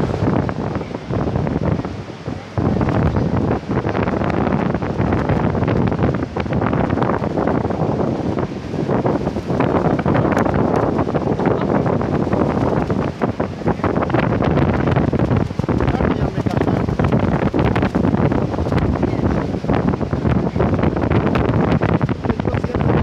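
Wind buffets outdoors in loud gusts.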